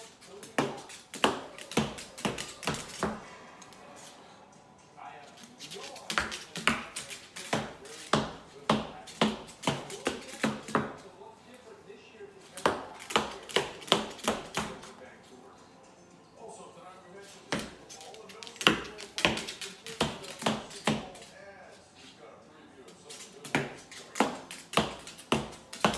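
A bird's claws tap and scrape rapidly on a hard countertop.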